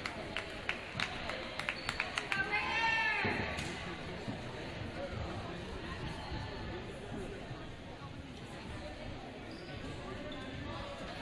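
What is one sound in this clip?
Young women chatter and call out in a large echoing gym.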